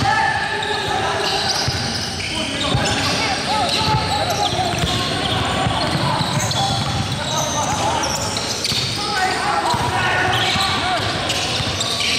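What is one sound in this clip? A basketball bounces on the floor.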